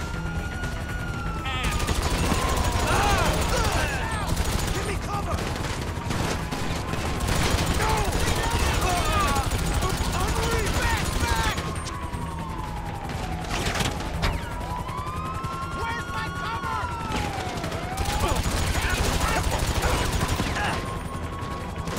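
A police siren wails and rises and falls.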